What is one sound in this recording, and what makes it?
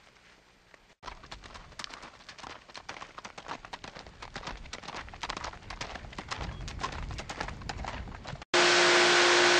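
A horse's hooves clop rhythmically on dirt.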